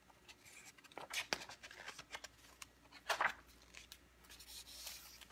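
A book's page rustles as it is turned.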